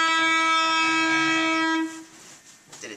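An electric guitar rings out with a steady sustained note.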